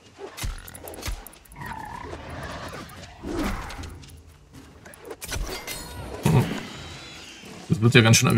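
A wild boar squeals and grunts.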